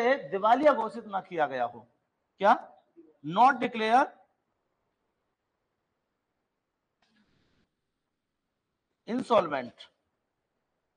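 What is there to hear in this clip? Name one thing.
A middle-aged man speaks calmly into a microphone, in pauses.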